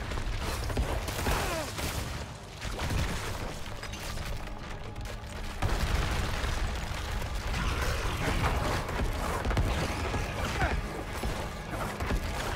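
Heavy blows and blasts crash in a fight.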